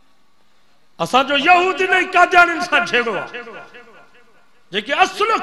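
An elderly man speaks loudly and with feeling through a microphone, in echoing bursts.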